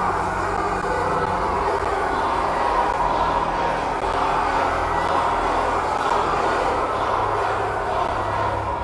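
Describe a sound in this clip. A large crowd cheers and chants loudly in a big echoing hall.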